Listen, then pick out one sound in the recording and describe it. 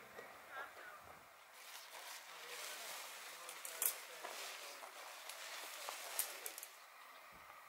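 Tent fabric rustles and poles scrape as a tent is handled.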